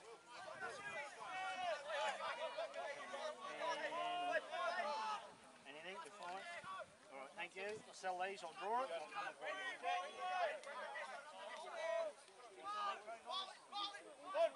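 Teenage boys shout and call out to each other outdoors on an open field.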